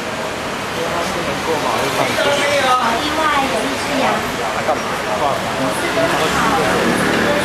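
A young woman sings into a microphone, amplified through a loudspeaker outdoors.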